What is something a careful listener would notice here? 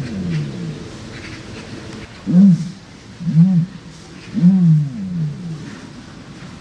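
A large bird gives deep, low booming calls, several times in a row.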